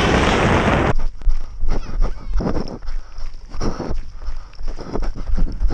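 Footsteps crunch on gravel at a run.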